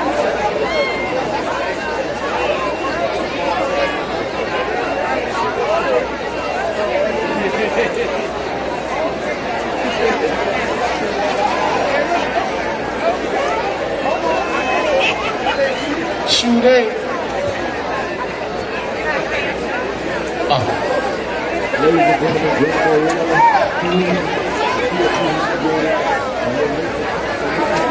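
A large outdoor crowd of young people chatters and calls out all around.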